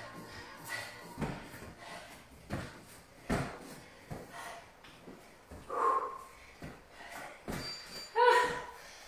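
A woman's hands and feet thump on a rubber floor during exercise.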